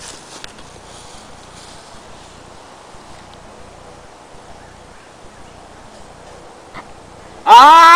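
Dry leaves rustle as someone crouches on the ground.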